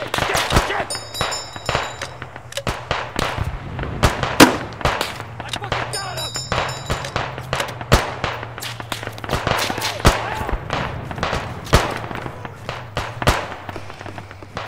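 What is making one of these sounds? Gunshots crack and echo across open ground in an ongoing battle.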